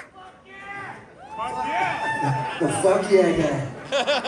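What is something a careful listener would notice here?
A man sings into a microphone on stage.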